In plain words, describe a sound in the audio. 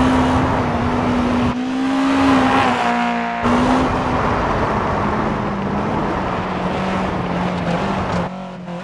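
A rally car engine drones and revs steadily.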